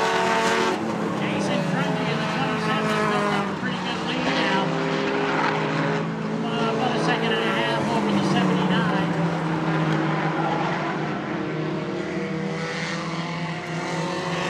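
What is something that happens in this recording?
Race car engines roar loudly, rising and falling in pitch as cars speed around a track.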